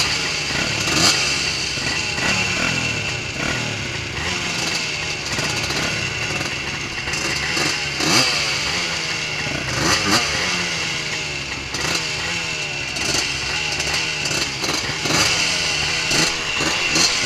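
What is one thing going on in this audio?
Several quad bike engines rev and idle loudly close by.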